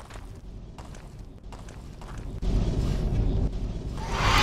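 A fireball roars and bursts.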